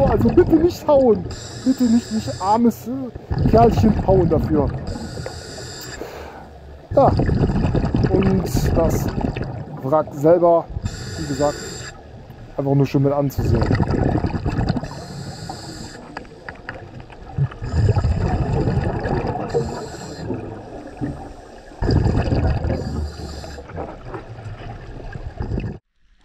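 Bubbles from a scuba diver's breathing gurgle and rumble underwater in repeated bursts.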